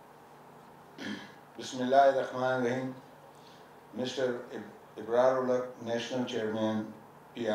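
A man speaks formally into a microphone over a loudspeaker.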